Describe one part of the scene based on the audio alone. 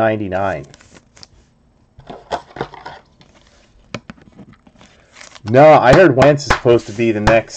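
Cards and plastic sleeves rustle and click as they are handled.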